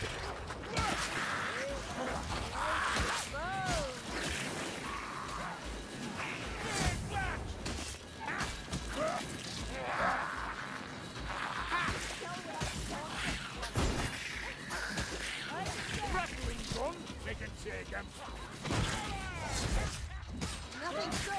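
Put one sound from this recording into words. Creatures snarl and screech as they attack.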